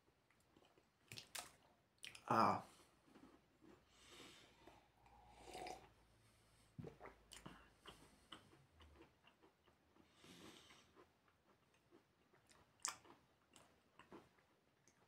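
A man chews food close by, making wet smacking sounds.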